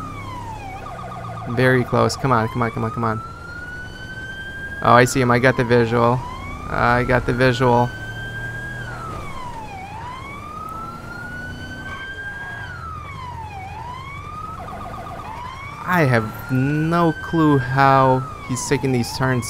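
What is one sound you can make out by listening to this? A police siren wails, rising and falling in pitch.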